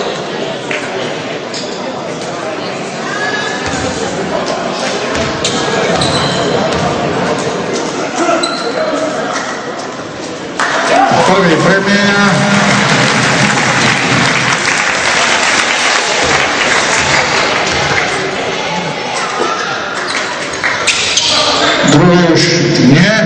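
A crowd murmurs and cheers in an echoing sports hall.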